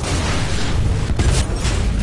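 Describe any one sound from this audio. A loud explosion blasts.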